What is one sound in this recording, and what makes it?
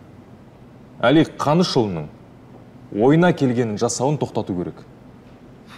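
A young man speaks calmly and clearly nearby.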